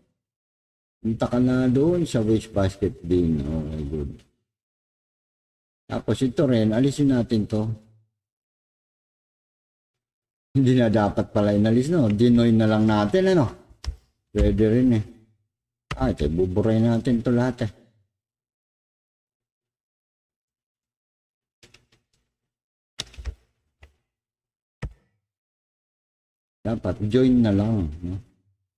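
An older man talks calmly and close to the microphone, pausing now and then.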